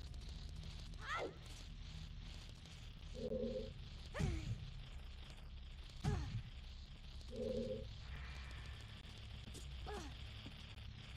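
A sword swishes through the air several times.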